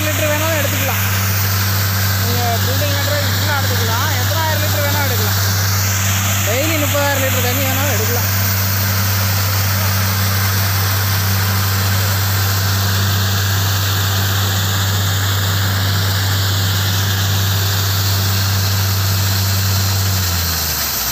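A drilling rig's engine hums loudly and steadily.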